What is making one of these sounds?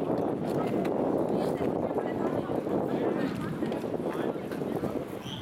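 A flag flaps and rustles in gusty wind outdoors.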